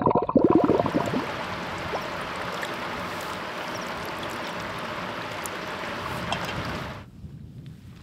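Water splashes and trickles close by.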